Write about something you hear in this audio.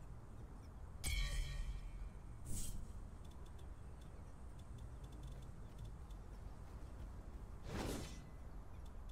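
Short bright chimes and clicks ring out.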